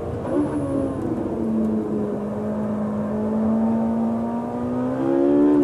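A sports car engine roars loudly from inside the cabin, its pitch shifting through gears and rising.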